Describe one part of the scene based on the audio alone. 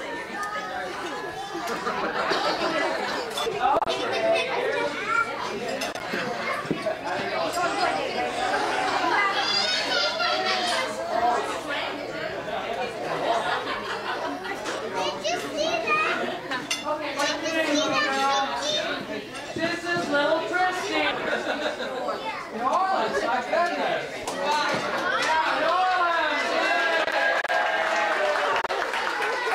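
A crowd of adults and children chatters throughout.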